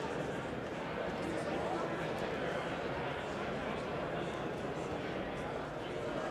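Many people talk at once in a large echoing hall.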